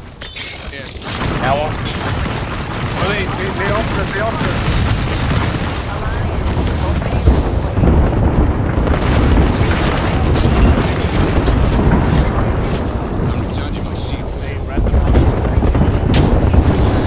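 Gunfire and explosions crackle and boom in a video game.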